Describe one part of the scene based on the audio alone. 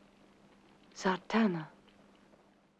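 A young woman speaks briefly and softly nearby.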